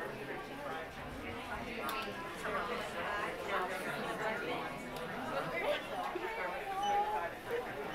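A crowd of people chatter all around indoors.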